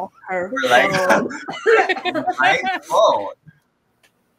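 A young man laughs through an online call.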